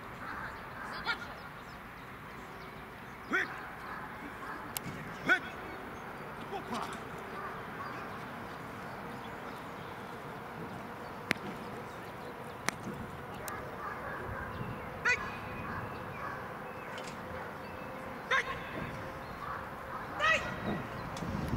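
A man shouts short, sharp commands outdoors.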